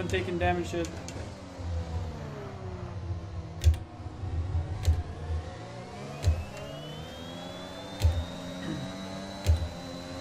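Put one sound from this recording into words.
A racing car engine revs high and climbs in pitch as it speeds up.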